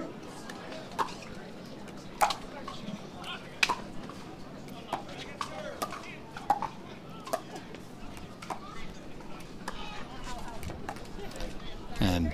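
Paddles hit a plastic ball back and forth with sharp pops.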